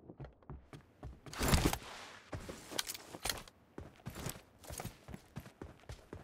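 Footsteps patter quickly over the ground.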